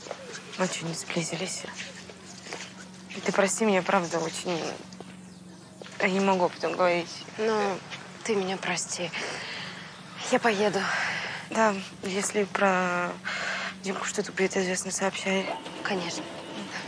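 A woman speaks tensely nearby.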